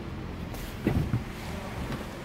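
A foot thuds onto a hard floor.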